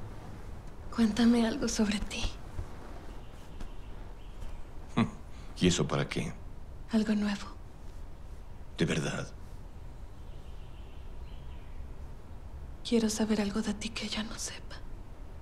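A man speaks softly and close by.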